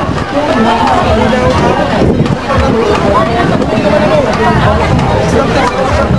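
A large outdoor crowd chatters.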